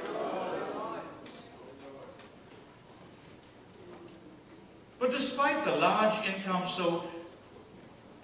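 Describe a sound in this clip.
An elderly man speaks through a microphone in a large echoing hall, pausing between phrases.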